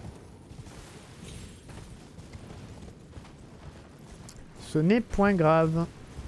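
A horse's hooves thud on grass.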